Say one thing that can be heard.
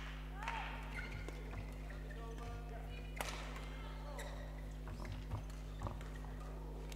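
Shuttlecock hits crack off badminton rackets in a large echoing hall.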